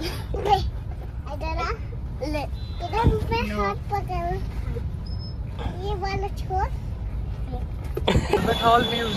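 A young girl talks excitedly close by.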